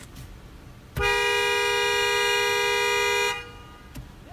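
A car horn blares loudly and steadily, then stops.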